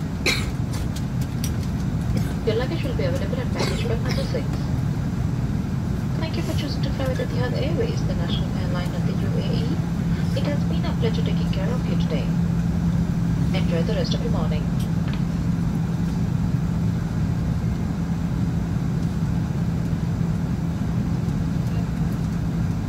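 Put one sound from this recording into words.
A jet engine hums steadily, heard from inside a taxiing plane.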